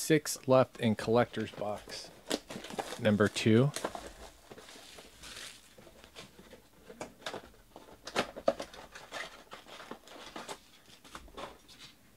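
Cardboard boxes and card packs rustle and scrape as they are handled.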